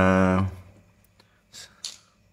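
A finger taps softly on a phone's touchscreen.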